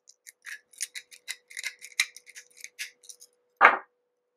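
Small pliers click and snip.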